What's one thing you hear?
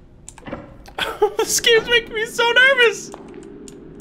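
A young man laughs loudly and close to a microphone.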